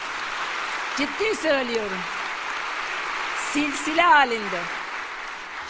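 A woman speaks with animation through a microphone in a large hall.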